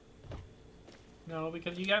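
A fire crackles in a barrel.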